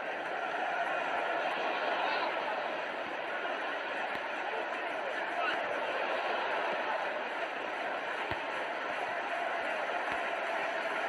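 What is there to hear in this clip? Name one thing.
A stadium crowd roars steadily in the distance.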